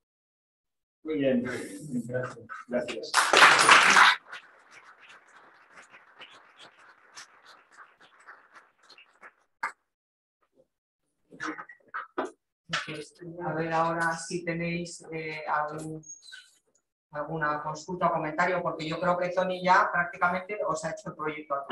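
A man speaks calmly through a microphone, as in an online lecture.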